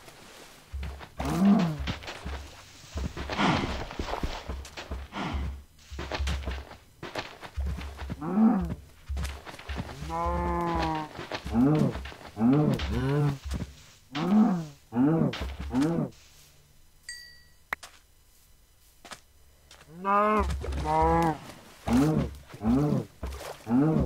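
A young man talks with animation into a headset microphone, close up.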